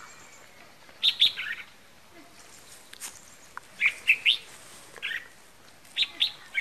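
A bird calls loudly in short bursts of sharp chirps.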